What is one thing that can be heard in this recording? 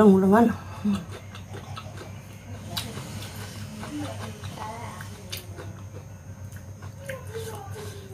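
Fingers squish and pick at soft food.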